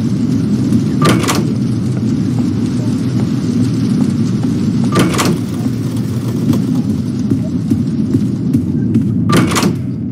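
A wooden door thuds open.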